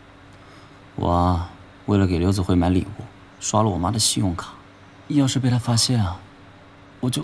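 A young man explains with animation up close.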